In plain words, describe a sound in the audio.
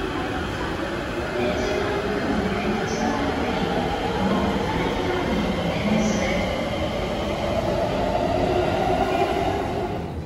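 An electric train starts moving and pulls away with a rising, humming whine.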